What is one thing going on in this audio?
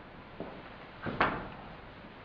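A body thuds onto the floor.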